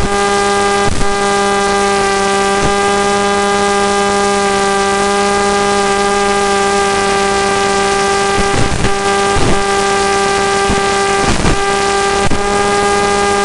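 A small drone's motors whine steadily and loudly as the drone flies.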